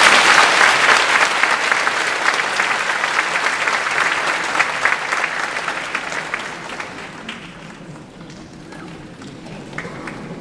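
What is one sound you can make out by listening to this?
An audience applauds in a large hall, the clapping gradually fading away.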